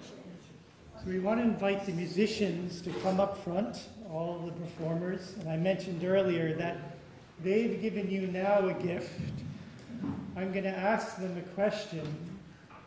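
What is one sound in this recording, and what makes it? An elderly man speaks calmly to an audience in an echoing hall.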